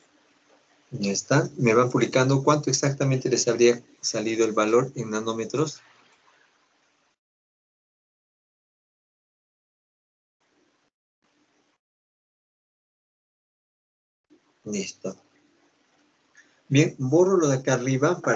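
A man speaks calmly over an online call, explaining.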